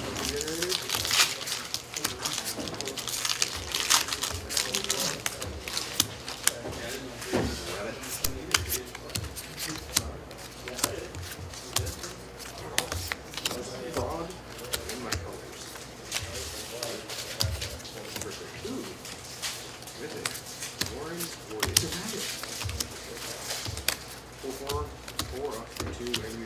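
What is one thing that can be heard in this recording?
Playing cards slide and tap on a table mat.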